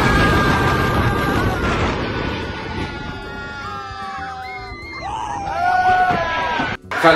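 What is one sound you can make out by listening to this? A man screams loudly close by.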